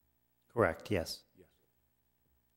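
A middle-aged man speaks briefly into a microphone.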